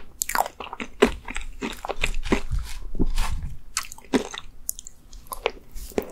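A spoon scrapes into soft cake.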